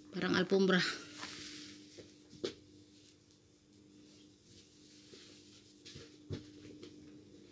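A blanket rustles and flaps as it is shaken and folded.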